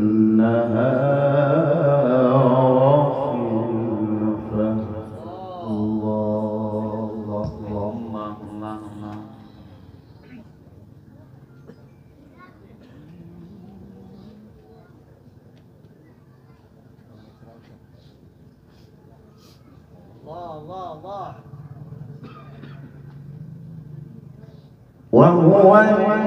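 A man sings loudly into a microphone, his voice carried over loudspeakers.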